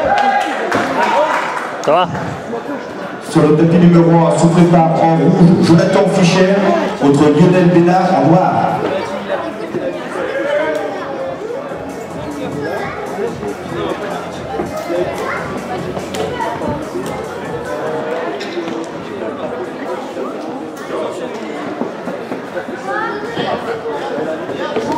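People murmur and chatter in a large echoing hall.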